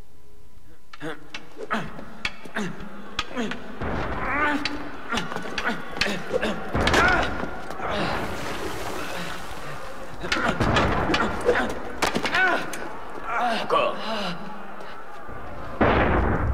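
Swords clash and scrape in a sword fight.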